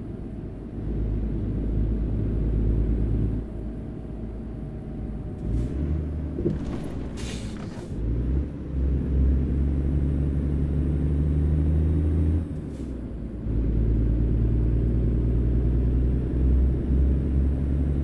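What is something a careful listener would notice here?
A truck engine rumbles deeply, rising and falling as the driver shifts gears.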